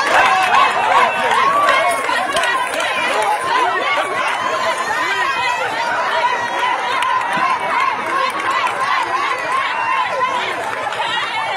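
A crowd shouts and clamours outdoors.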